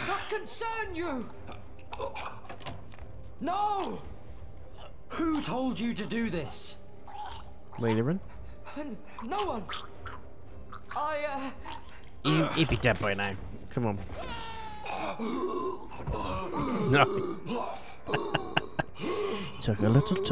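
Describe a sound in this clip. A man talks into a close microphone, reacting with animation.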